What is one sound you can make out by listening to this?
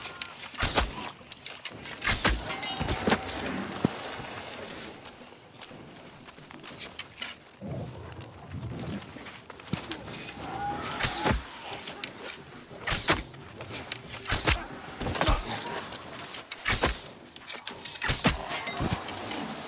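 Magic blasts crackle and burst on impact.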